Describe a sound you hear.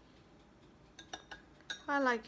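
A stirrer clinks against a glass.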